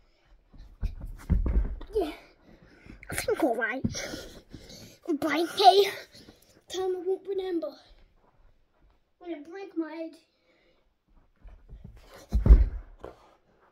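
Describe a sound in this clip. Thumps and bumps sound close by.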